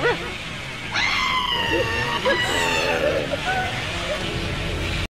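A chainsaw engine roars steadily.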